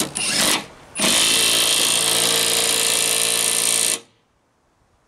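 A cordless drill whirs loudly.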